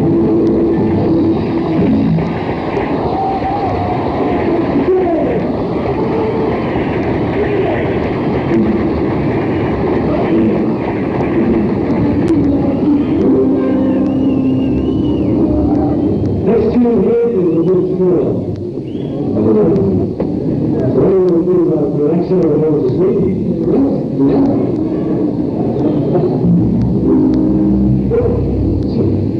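A rock band plays loudly.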